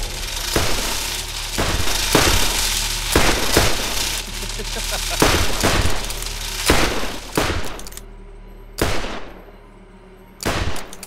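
Gunshots fire one after another, each with a ringing echo.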